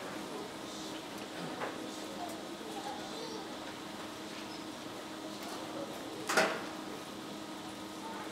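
An audience murmurs quietly in a large echoing hall.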